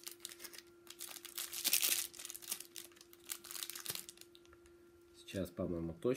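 Foil wrapping crinkles and tears as a pack is opened.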